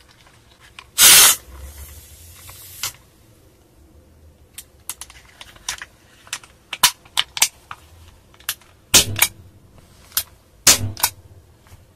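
A pistol slide racks with a sharp metallic clack.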